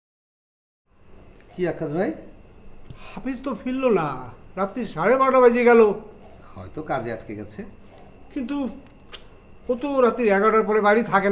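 A man speaks nearby with agitation.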